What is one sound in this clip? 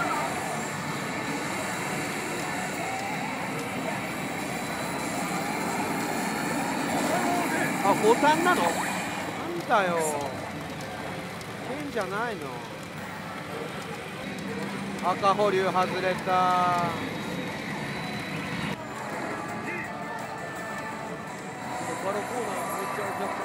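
A pachinko machine plays loud electronic music and sound effects.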